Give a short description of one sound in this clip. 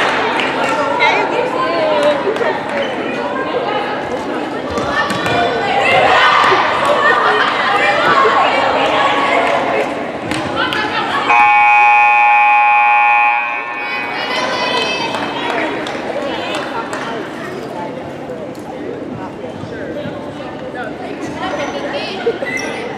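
Young women chatter and call out in a large echoing gym.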